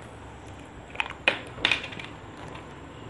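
A plastic water bottle crinkles and its cap clicks open close by.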